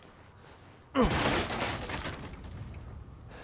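A wooden crate smashes apart with a loud crack.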